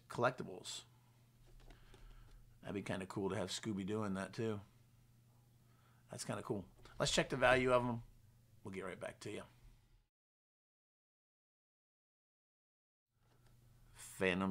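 A middle-aged man talks calmly and casually into a nearby microphone.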